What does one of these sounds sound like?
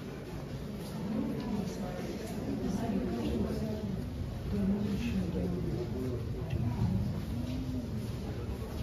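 Adults murmur in low voices nearby.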